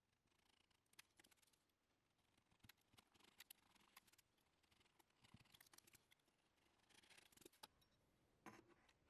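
A blade scrapes thin shavings from wood.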